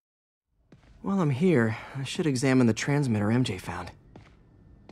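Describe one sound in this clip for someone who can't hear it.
A young man speaks calmly to himself.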